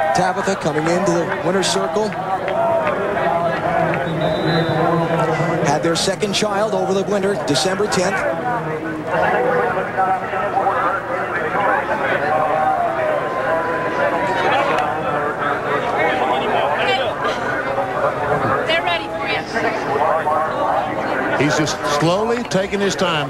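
A crowd of people talks and cheers loudly all around.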